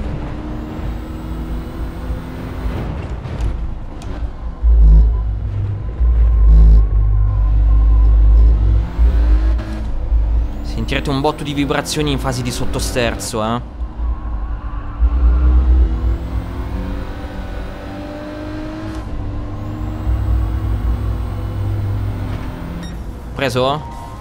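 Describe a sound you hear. A racing car engine revs and roars, rising and falling as it shifts gears.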